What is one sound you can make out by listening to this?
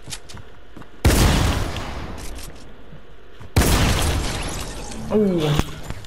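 Rockets explode with loud booms that rumble and fade.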